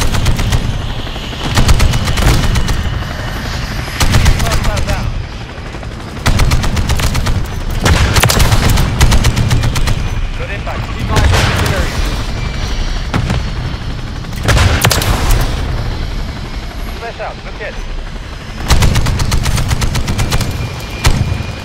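A helicopter's rotor drones steadily.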